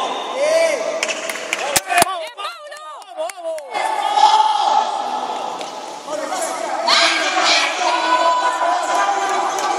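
A crowd of young men and women shouts encouragement in a large echoing hall.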